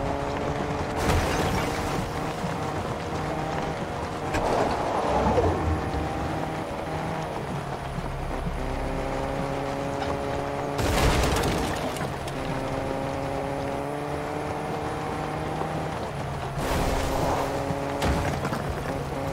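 A car bumps and thuds over rough ground.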